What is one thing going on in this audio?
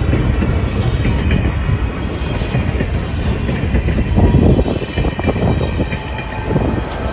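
Train wheels clack over the rail joints.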